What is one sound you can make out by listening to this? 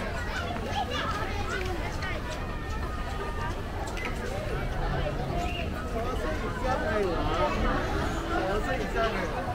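A crowd of adults and children chatter nearby outdoors.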